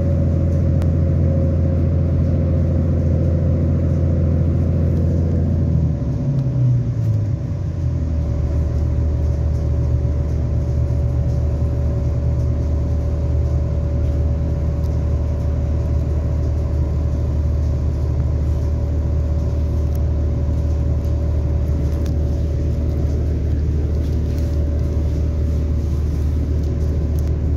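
A train's engine hums with a low steady drone that shifts in pitch.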